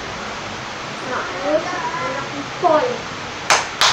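A girl speaks briefly and playfully nearby.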